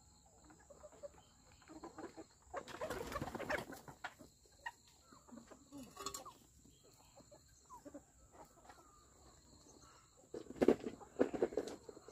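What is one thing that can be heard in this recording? Chickens cluck and peck around outdoors.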